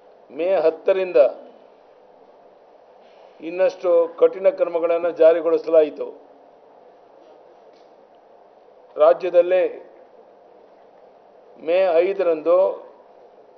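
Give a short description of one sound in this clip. An elderly man speaks calmly into microphones, reading out in short phrases with pauses.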